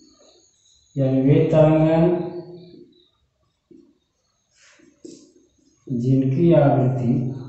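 A middle-aged man speaks nearby in a calm, teaching voice.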